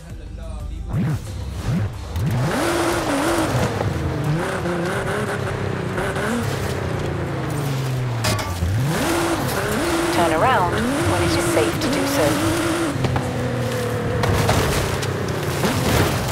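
A sports car engine revs up and down through its gears.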